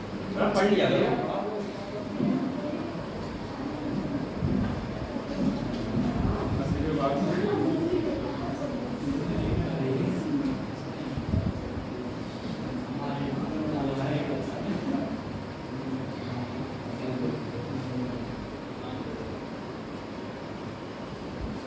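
A young man speaks calmly nearby, in a room with a slight echo.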